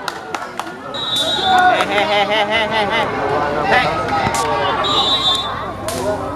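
A crowd of spectators cheers and chatters.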